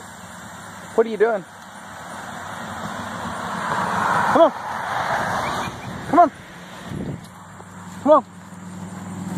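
A dog yelps a few times nearby.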